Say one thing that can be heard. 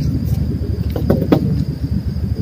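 A wooden board bumps and scrapes on the ground nearby.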